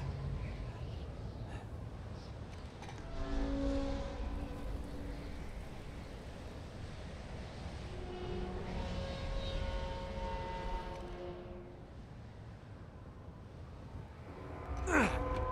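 Wind blows steadily and roars low outdoors.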